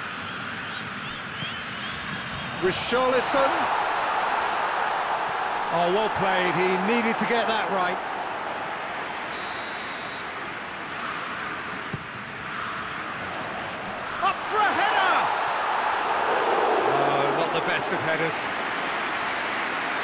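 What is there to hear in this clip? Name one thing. A stadium crowd roars and chants.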